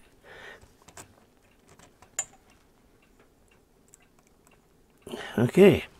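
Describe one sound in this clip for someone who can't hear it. Small metal clips click onto wires.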